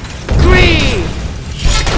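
A metal weapon clangs against a shield.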